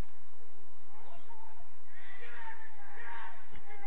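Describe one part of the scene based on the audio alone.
Players shout to each other from a distance outdoors.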